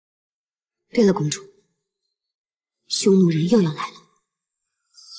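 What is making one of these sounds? A woman speaks quietly and earnestly.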